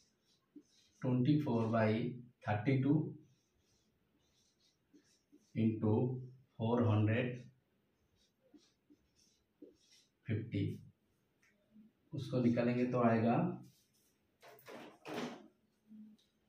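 A man speaks calmly nearby, in short phrases with pauses.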